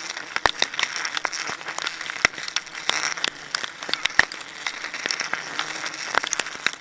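A rope creaks and scrapes against tree bark.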